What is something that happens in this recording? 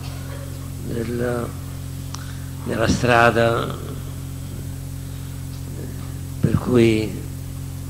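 An elderly man speaks slowly through a microphone, in short phrases with long pauses.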